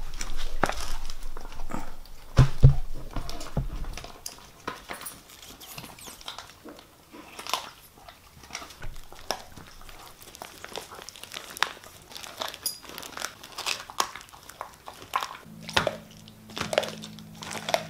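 A dog chews noisily.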